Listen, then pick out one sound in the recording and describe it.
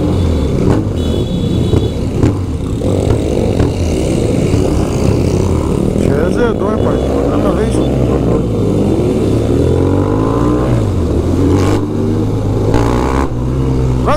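A motorcycle engine rumbles steadily up close, revving up and down.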